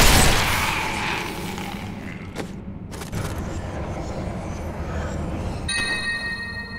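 Menu items click as a game inventory opens.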